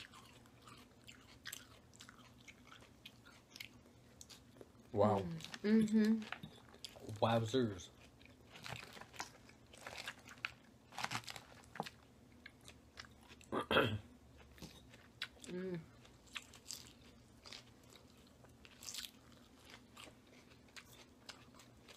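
Lettuce crunches loudly as people chew up close.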